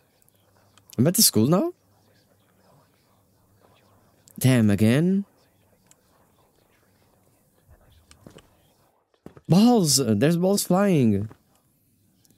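A young man speaks loudly and with animation into a close microphone, in short bursts.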